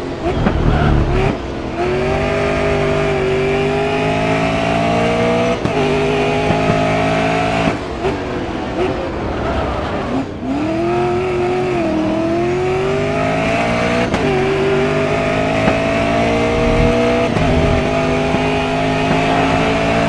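A racing car engine roars, rising in pitch through the gears and dropping as it brakes.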